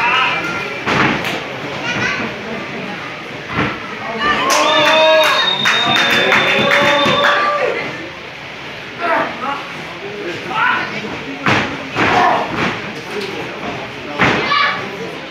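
Bodies thud heavily onto a wrestling ring mat.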